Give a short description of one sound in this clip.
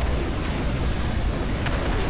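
Weapons fire in a battle with rapid shots.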